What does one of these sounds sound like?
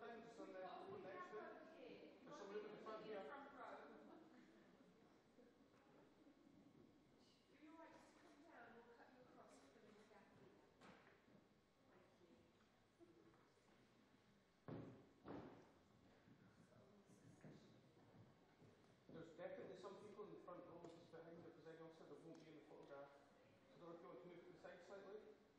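A crowd of young women chatters and murmurs in a large echoing hall.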